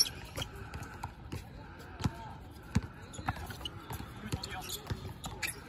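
Sneakers squeak on the court surface.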